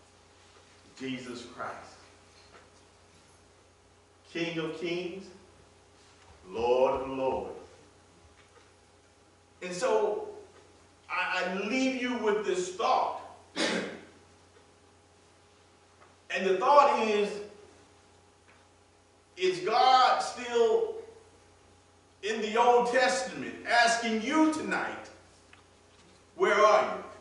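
A man speaks with animation in short phrases and pauses, heard through a microphone in an echoing hall.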